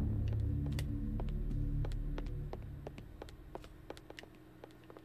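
Quick footsteps tap on a wooden floor.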